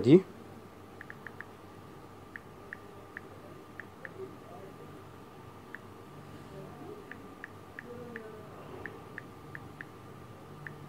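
Short beeps sound as calculator keys on a phone are tapped.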